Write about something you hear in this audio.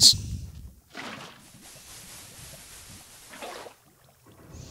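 Water pours out and splashes.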